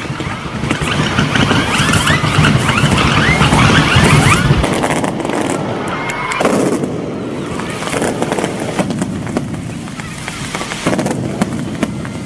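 Firecrackers crack and bang rapidly outdoors.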